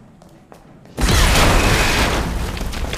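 Something explodes with a loud burst of sparks.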